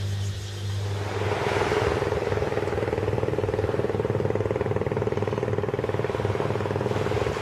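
Small waves lap gently at a shore.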